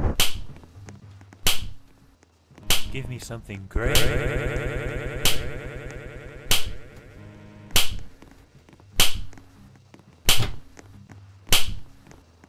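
A ruler slaps sharply at a steady, even pace.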